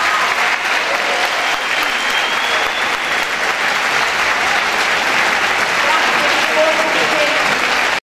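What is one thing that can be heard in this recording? A women's choir sings in a large hall.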